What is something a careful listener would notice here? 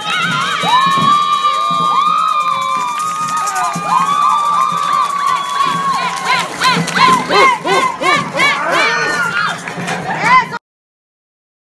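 A group of young people sings together in a large echoing hall.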